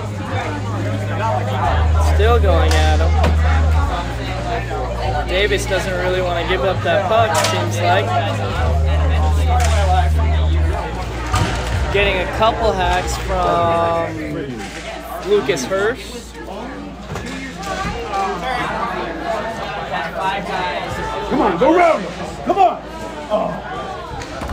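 Spectators chatter throughout an echoing indoor arena.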